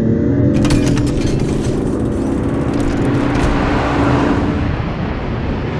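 A car engine roars as it drives on a road.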